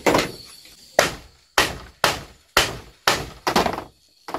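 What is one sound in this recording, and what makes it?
A heavy knife chops into wood with sharp, repeated knocks.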